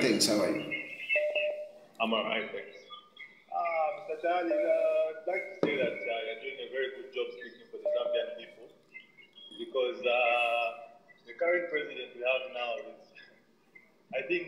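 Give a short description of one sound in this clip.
A man talks close by, calmly and with pauses.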